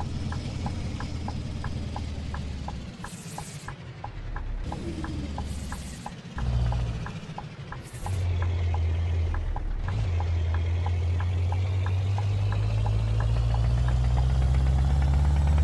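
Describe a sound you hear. A truck engine rumbles low and steadily, growing louder toward the end.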